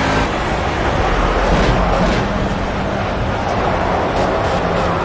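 A racing car engine roars loudly at high speed.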